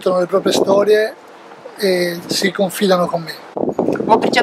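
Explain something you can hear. A middle-aged man speaks with a smile, close by.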